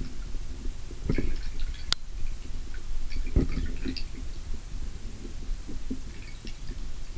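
Water rumbles and burbles in a low, muffled way, as if heard underwater.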